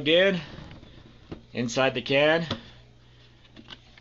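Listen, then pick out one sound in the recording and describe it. A plastic lid unlatches and clacks open.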